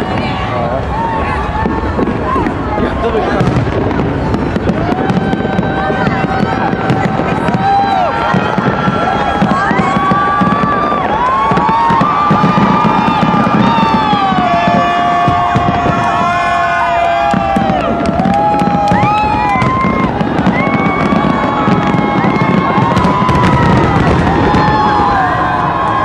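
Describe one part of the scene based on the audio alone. A large crowd outdoors cheers and chatters.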